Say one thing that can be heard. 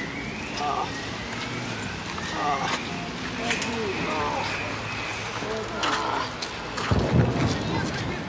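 A man talks on a phone outdoors.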